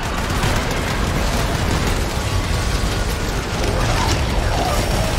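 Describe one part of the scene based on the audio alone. Gunfire and energy blasts crackle rapidly.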